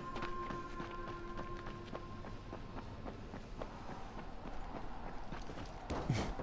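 Quick footsteps patter on pavement.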